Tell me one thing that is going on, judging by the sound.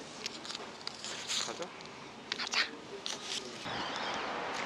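A young woman laughs and speaks softly nearby.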